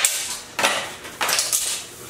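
A broom sweeps across a wooden floor.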